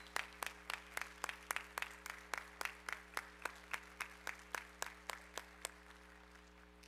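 A small group claps in a steady, even rhythm in a large echoing hall.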